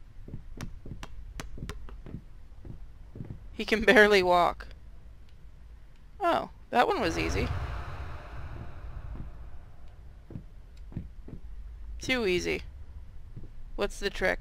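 Footsteps climb wooden stairs.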